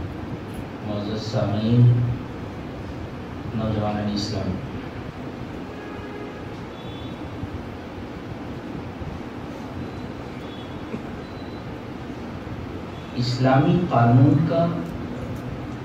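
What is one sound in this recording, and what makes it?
A middle-aged man speaks through a microphone and loudspeakers, pausing between phrases, in an echoing hall.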